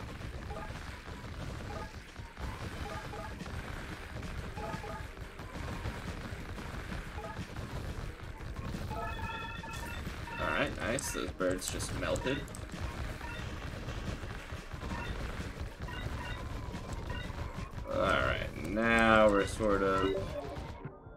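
Fast clicking and whooshing game combat effects play steadily.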